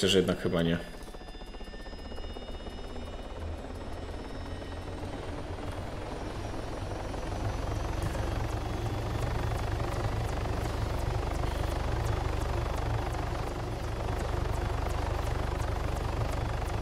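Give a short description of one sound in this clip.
A helicopter engine and rotor roar steadily, growing louder.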